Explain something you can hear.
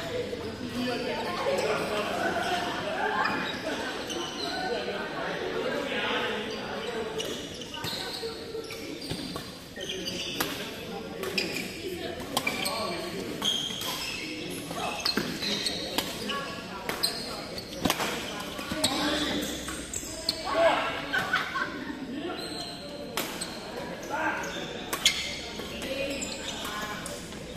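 Voices of several players chatter and call out around the hall.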